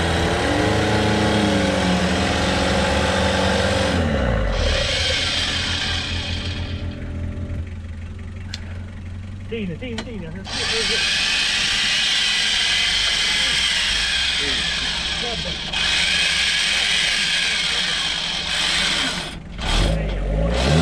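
A vehicle engine revs hard and rises and falls.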